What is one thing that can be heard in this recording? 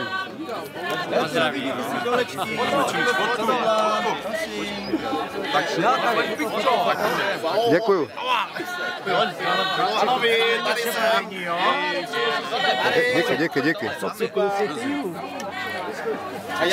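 A crowd of men and women chatter and talk loudly outdoors.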